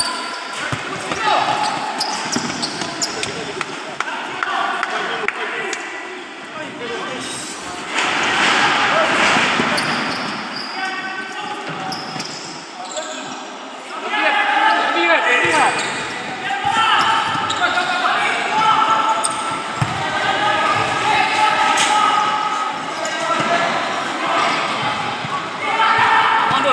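Players' shoes squeak on a hard floor.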